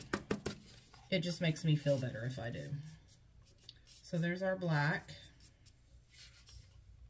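A sheet of paper rustles and taps against a surface.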